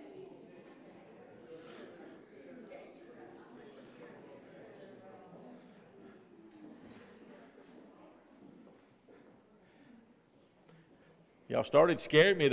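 A congregation chatters softly in a room that echoes.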